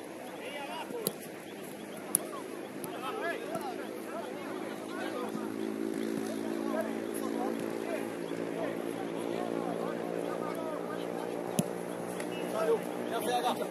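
Women players shout and call out across an open outdoor pitch.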